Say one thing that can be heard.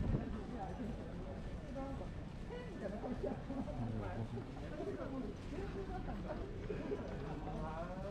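People chatter and talk nearby outdoors.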